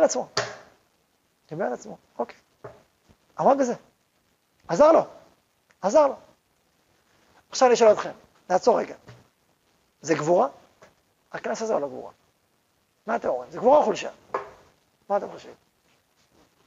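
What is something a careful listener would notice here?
A man speaks through a microphone in a lecturing tone, in short phrases with pauses.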